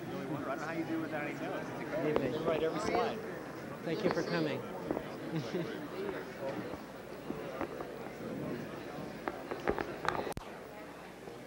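A crowd of people talks and murmurs.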